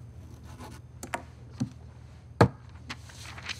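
A rubber stamp knocks sharply on paper.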